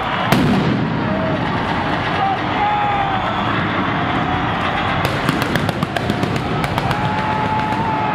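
Stage pyrotechnics bang loudly.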